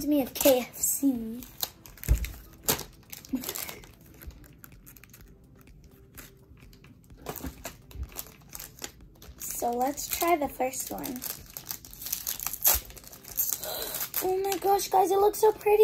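Plastic wrappers crinkle and rustle in hands.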